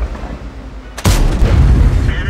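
A tank cannon fires with a loud, sudden boom.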